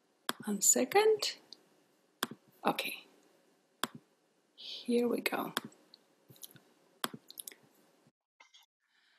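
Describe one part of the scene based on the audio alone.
A young woman speaks animatedly through an online call microphone.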